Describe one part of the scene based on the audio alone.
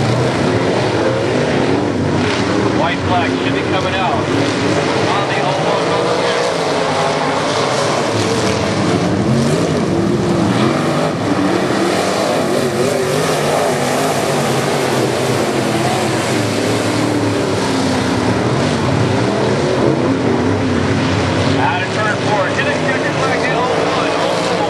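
Race car engines roar loudly.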